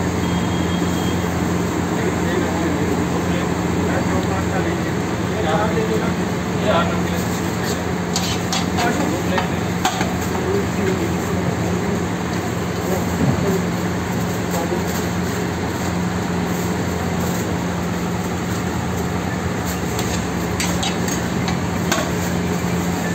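Food sizzles steadily on a large hot griddle.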